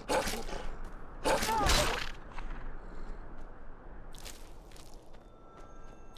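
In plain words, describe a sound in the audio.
A sword strikes with sharp blows.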